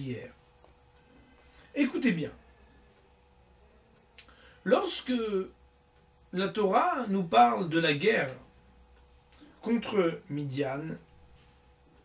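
A man speaks calmly and slowly in short phrases, close to a microphone.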